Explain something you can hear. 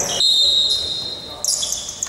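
A ball is kicked with a thud.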